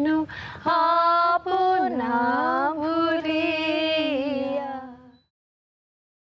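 A woman sings a sustained melody close to a microphone.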